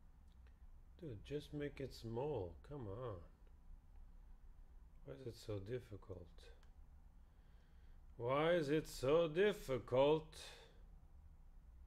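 An older man speaks calmly and close to a microphone, in short bursts.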